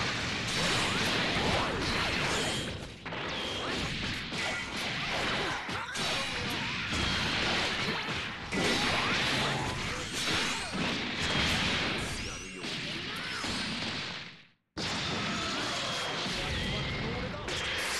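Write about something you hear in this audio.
Punches and kicks thud and smack in quick bursts.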